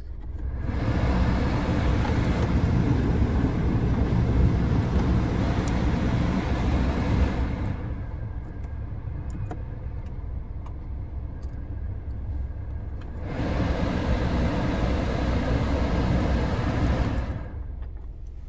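A car's ventilation fan blows air in a loud rushing roar, then drops off.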